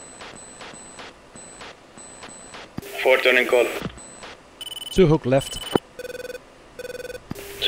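A jet engine hums steadily from inside a cockpit.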